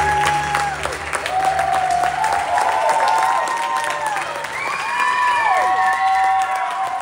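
Several voices sing together in a large, echoing hall.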